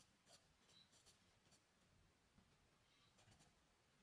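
Fingers rub and smudge charcoal on paper.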